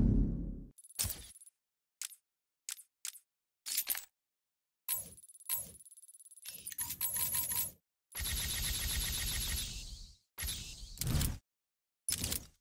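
Short electronic menu beeps and clicks sound.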